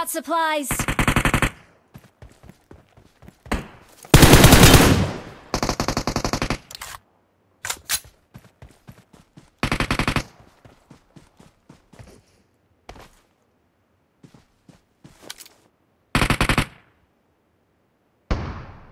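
Rapid gunfire rattles out in short, loud bursts.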